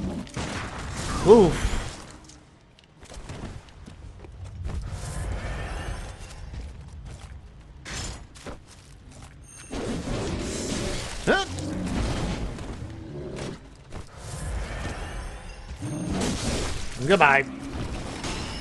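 A hulking creature lets out a deep, loud groan.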